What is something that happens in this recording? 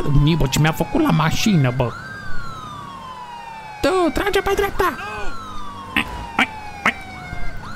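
A police siren wails and yelps close by.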